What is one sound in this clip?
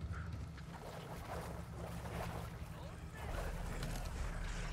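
Water splashes around wading legs.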